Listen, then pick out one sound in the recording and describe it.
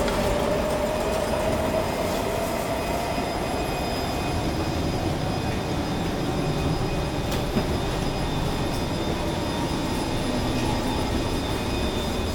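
An electric metro train hums while standing at a platform.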